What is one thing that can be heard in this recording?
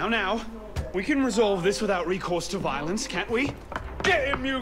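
A young man speaks calmly and persuasively, close by.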